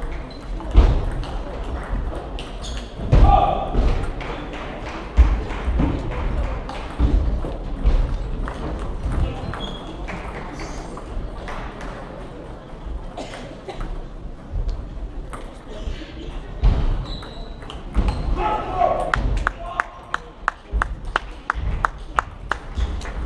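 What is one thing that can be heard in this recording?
Shoes squeak and scuff on a hard floor.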